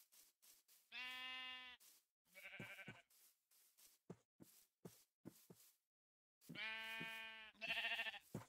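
A sheep bleats several times.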